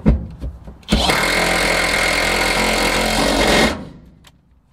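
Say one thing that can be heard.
A cordless drill whirs.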